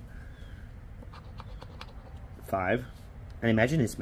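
A chip scrapes across a scratch card.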